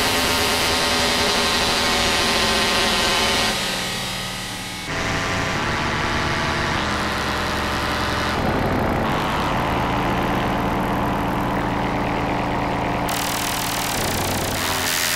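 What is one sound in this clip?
A modular synthesizer plays droning electronic tones that shift and change in texture.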